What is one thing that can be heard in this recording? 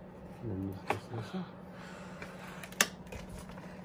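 A plastic toy truck body clicks as it is pulled off its frame.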